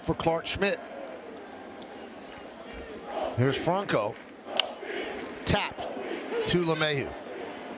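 A stadium crowd murmurs in the background.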